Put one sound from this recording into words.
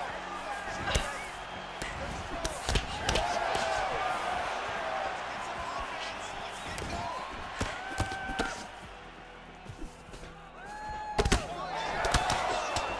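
Punches land with sharp thuds.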